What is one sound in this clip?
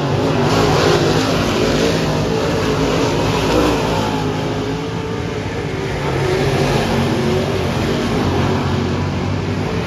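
Several racing car engines roar loudly around a dirt track outdoors.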